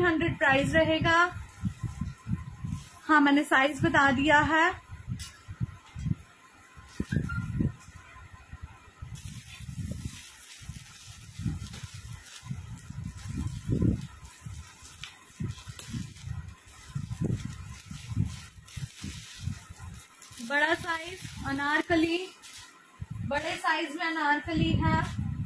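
A young woman speaks with animation close to the microphone.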